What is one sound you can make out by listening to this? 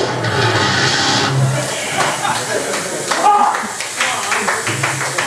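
A rock band plays loudly in a live, echoing room.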